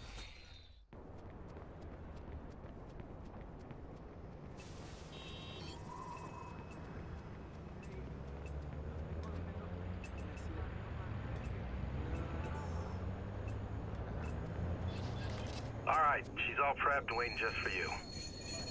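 City traffic hums in the distance.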